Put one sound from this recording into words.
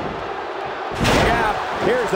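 A body slams hard onto a wrestling ring mat with a thud.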